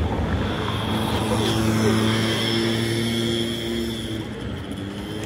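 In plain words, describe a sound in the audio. A motor scooter engine hums as it passes close by.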